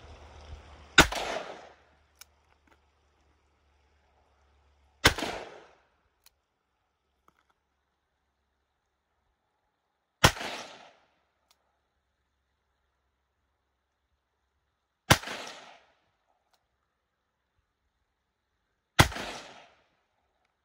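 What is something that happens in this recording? A handgun fires loud single shots outdoors, each echoing briefly across open ground.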